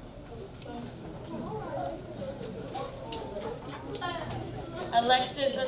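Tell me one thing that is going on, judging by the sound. A woman speaks into a microphone over a loudspeaker in an echoing hall.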